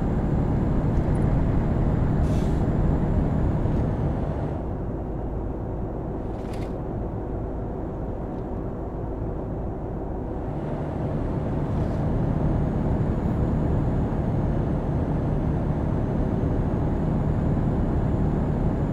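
A truck engine drones steadily, easing off briefly and then growing louder again.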